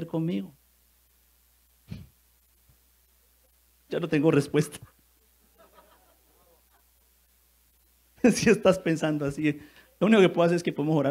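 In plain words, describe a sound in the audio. A man preaches with animation into a microphone, in bursts with pauses.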